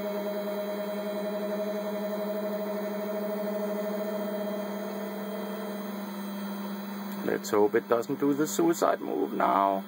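A printer's motors whir with a steady, humming tone.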